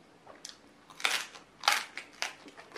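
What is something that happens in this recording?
A young woman crunches lettuce loudly close to a microphone.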